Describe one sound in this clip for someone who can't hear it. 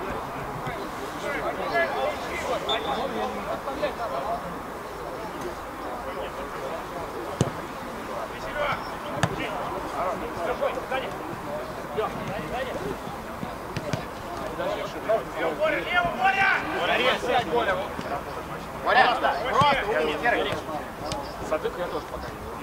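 Men shout and call out across an open pitch.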